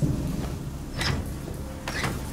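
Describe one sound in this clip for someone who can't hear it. A metal lever clunks as it is pulled.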